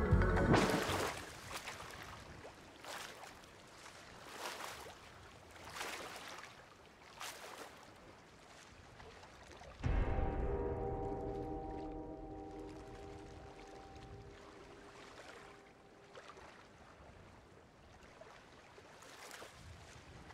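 Waves wash gently on open sea.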